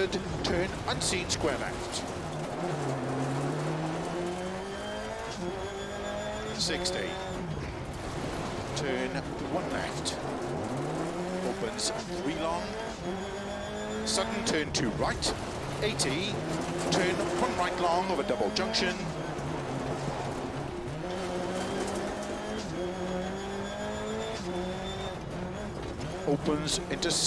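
A rally car engine revs up and down as the car speeds along.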